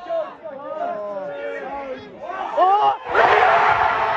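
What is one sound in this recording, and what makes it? A crowd sings and chants.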